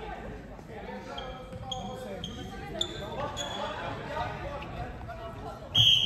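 Shoes squeak on the hall floor.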